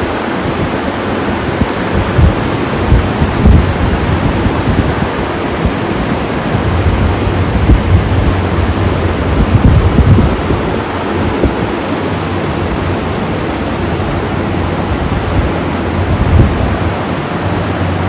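Many electric fans whir steadily at once.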